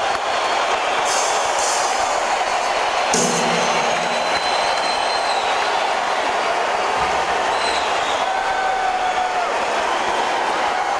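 A rock band plays loudly in a large echoing hall.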